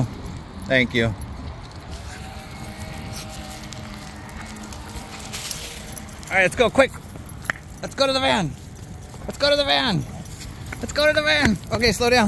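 A dog lets out high, whining yelps in short bursts while playing.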